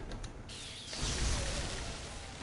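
Crackling electric blasts burst out in a game.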